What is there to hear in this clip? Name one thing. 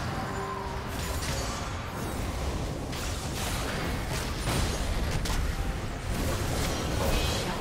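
Magic blasts and hits crackle and burst in a video game battle.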